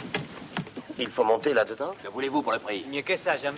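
A man speaks urgently nearby.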